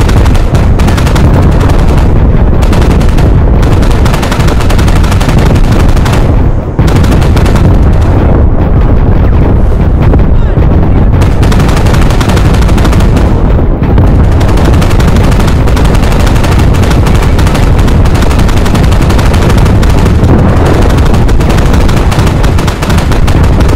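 Rifles fire in rapid bursts.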